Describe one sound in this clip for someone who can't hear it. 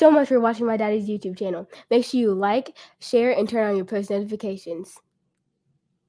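A young girl sings loudly and expressively into a close microphone.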